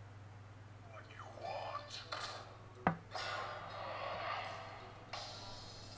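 Game music and effects play from a small phone speaker, getting louder.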